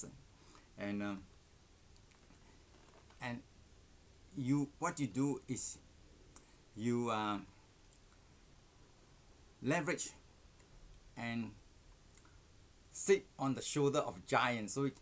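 An older man speaks calmly and expressively in short phrases, close to a microphone.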